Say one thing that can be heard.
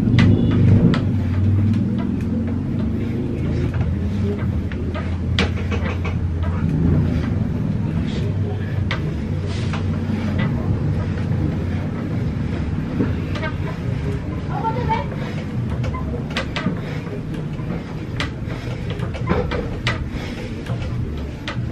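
A metal pull-up bar creaks and knocks as a man does pull-ups.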